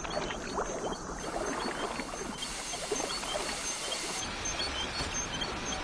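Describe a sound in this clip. Steam hisses in bursts from a pipe.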